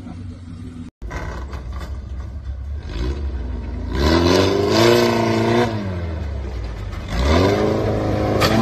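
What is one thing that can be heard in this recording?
A car engine roars and revs hard.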